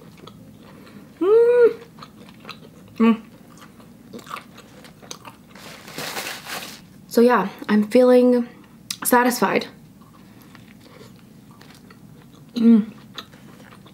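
A young woman hums with pleasure while eating.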